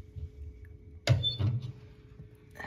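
A woodstove door latch clunks open.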